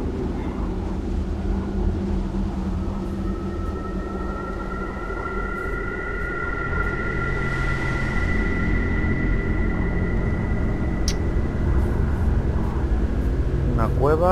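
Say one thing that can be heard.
A man speaks quietly and close to a microphone.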